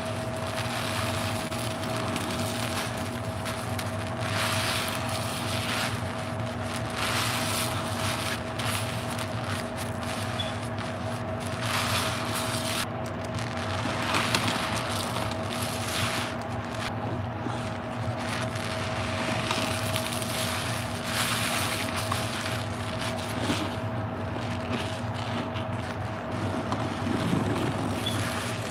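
A wet sponge squelches as it is squeezed.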